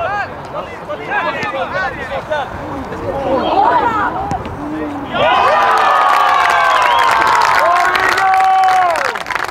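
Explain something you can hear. Young players shout and call to each other across an open field.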